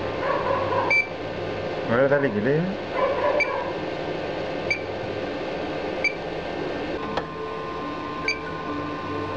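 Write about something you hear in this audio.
An embroidery machine's control panel beeps.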